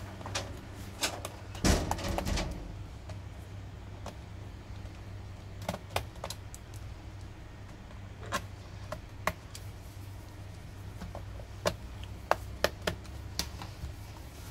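A screwdriver clicks and taps against a plastic laptop case.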